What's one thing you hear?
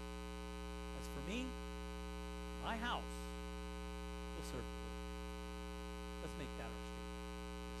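A man speaks calmly through a microphone in a large room, in short phrases with pauses.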